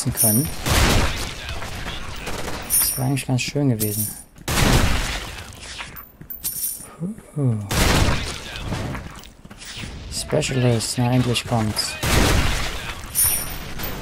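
Sniper rifle shots boom loudly with a ringing tail.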